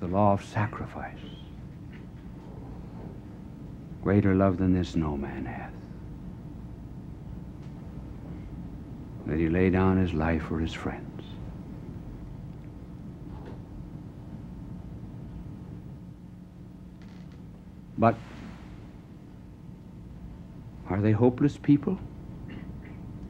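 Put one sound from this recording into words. A middle-aged man speaks slowly and deliberately with long pauses, heard through an old microphone.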